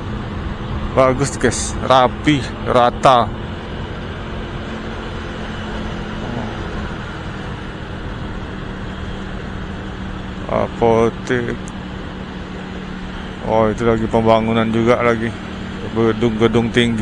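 Traffic hums steadily along a road.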